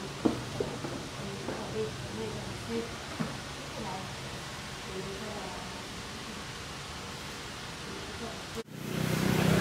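Taro roots knock together as they are handled.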